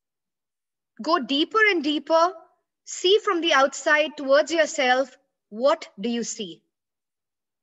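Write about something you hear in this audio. A middle-aged woman speaks with animation close to a microphone, as on an online call.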